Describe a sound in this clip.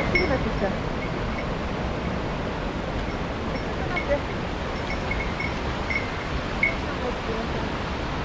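Water trickles steadily in a forest stream.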